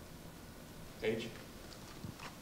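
A young man speaks briefly and calmly into a microphone.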